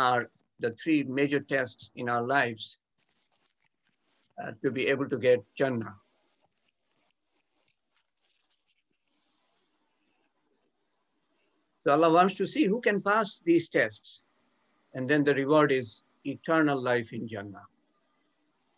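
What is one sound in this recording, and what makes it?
An elderly man speaks calmly through an online call, pausing between phrases.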